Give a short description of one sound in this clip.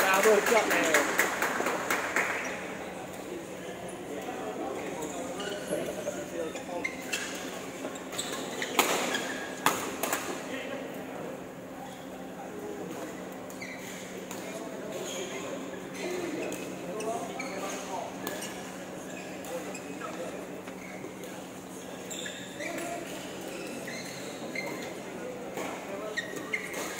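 Young men talk and call out nearby.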